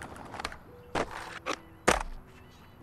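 A skateboard clacks against the ground.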